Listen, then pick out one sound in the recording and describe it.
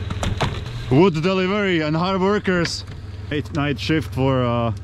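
A man shouts loudly nearby outdoors.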